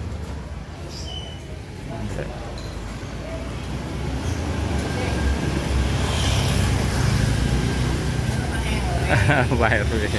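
Motorbikes ride past with humming engines.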